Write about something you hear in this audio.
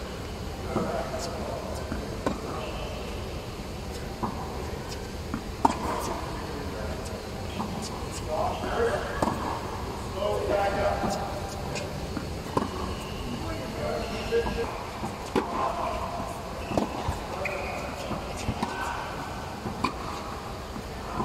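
Tennis rackets hit a ball back and forth with sharp pops in a large echoing hall.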